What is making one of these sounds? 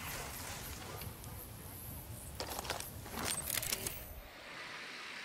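Leafy bushes rustle as someone pushes through them.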